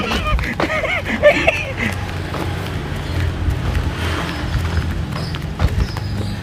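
Footsteps scuff on a paved path.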